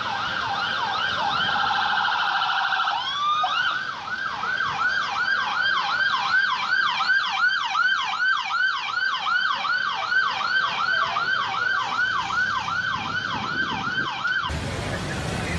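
A siren wails rapidly up and down close by.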